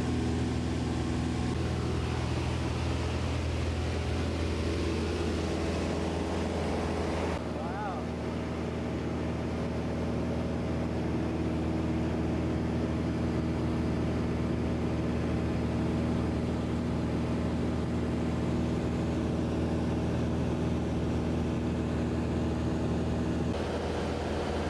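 A small plane's engine drones loudly and steadily from inside the cabin.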